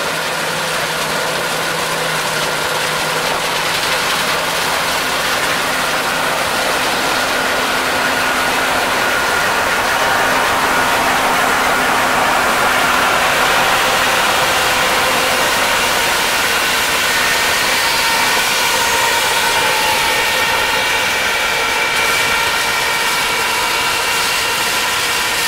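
A combine harvester engine roars steadily close by.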